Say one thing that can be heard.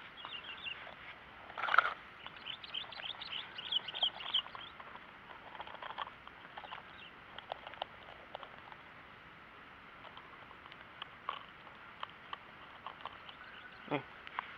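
A metal fish grip clicks and rattles faintly.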